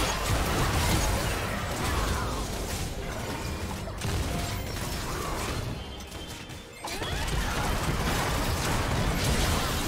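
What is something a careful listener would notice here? Magic spells whoosh and crackle in a busy fight.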